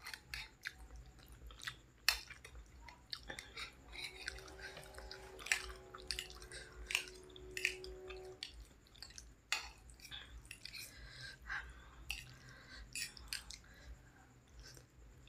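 Metal cutlery clinks and scrapes against a plate.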